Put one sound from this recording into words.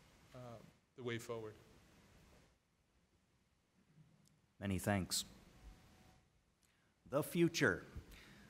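A man speaks into a microphone over loudspeakers in a large room, in short phrases.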